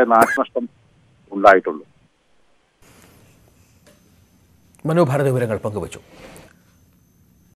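A man speaks over a phone line.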